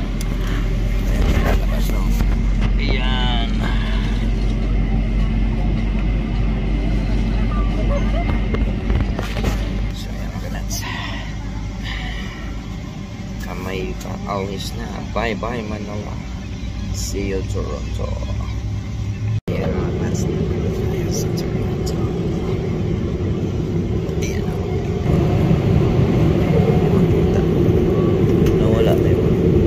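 A steady low engine drone hums throughout.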